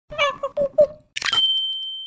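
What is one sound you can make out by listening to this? A cartoonish male voice laughs playfully.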